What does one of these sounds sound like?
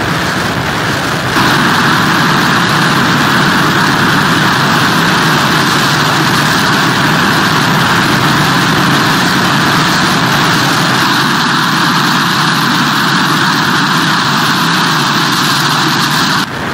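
Strong wind blows loudly outdoors.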